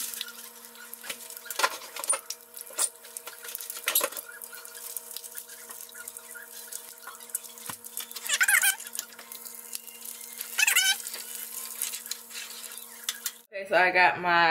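Bacon sizzles and crackles in a frying pan.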